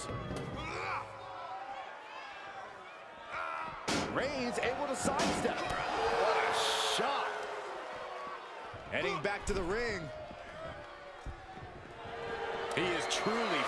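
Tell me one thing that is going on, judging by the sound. A crowd cheers and roars in a large arena.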